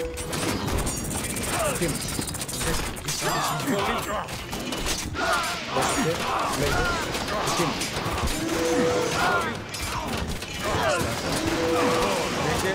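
Game battle sounds clash and crackle.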